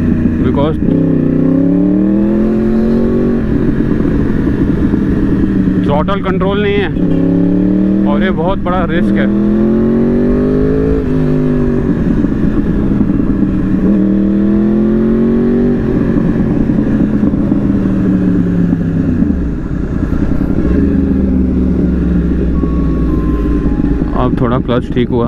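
A motorcycle engine roars and revs up through the gears close by.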